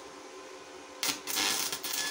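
An electric welding arc crackles and hisses.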